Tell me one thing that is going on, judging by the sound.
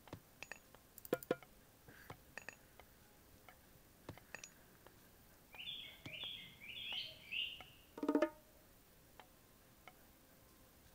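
Short game sound effects click and chime on and off.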